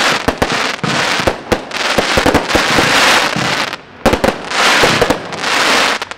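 Fireworks burst with sharp, rapid bangs.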